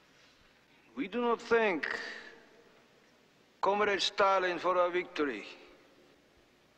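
A middle-aged man speaks slowly and forcefully into a microphone.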